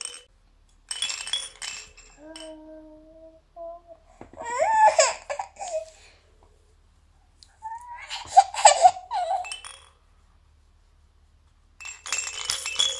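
A toy rattle shakes and jingles.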